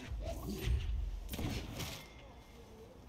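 Chunks of stone crash and rumble as they break apart.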